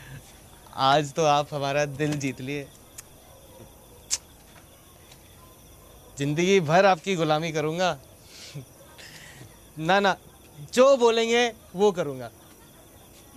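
A young man speaks warmly and cheerfully, close by.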